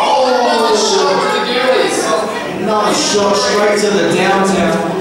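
A crowd of men and women shout and chatter loudly in an echoing hall.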